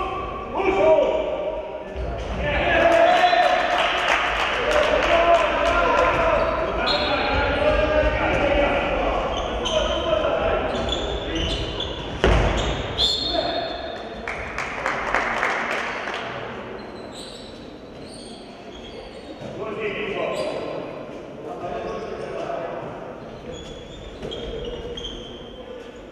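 Sports shoes squeak on a hard floor in a large echoing hall.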